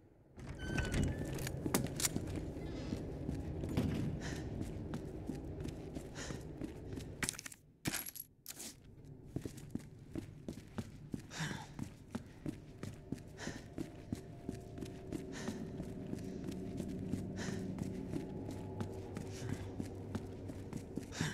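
Footsteps thud on a wooden floor at a steady pace.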